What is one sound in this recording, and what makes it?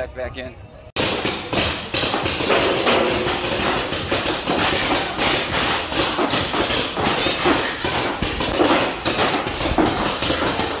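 Guns shoot with rapid popping bursts.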